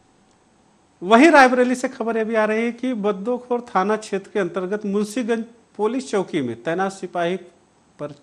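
A man speaks steadily into a microphone, reading out news.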